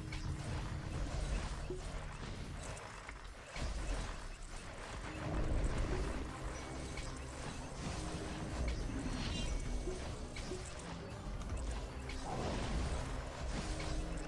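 Game spell effects crackle and burst continuously.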